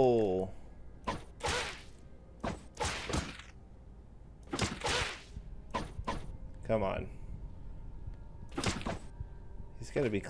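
Blades clash and strike in short, sharp bursts.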